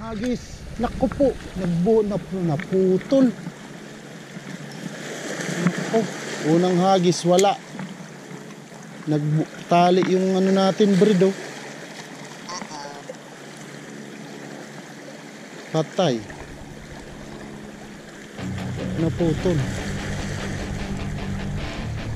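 Small waves lap and splash against rocks at the water's edge.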